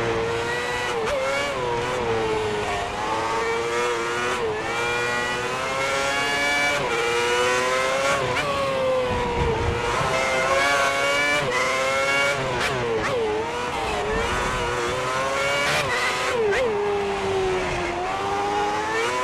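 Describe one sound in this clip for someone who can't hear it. A racing car engine screams, revving up and dropping sharply with each gear change.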